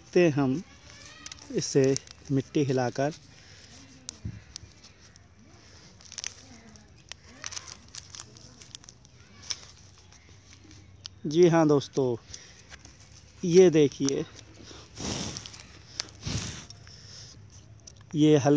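A thin plastic cup crinkles softly in a hand.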